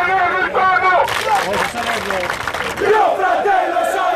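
A crowd claps hands in rhythm.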